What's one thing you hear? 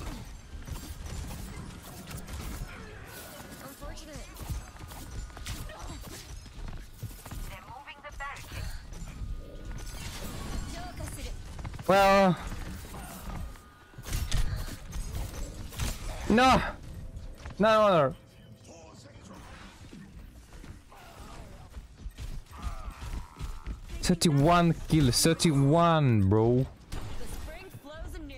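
Weapons fire and thrown blades whoosh in quick bursts.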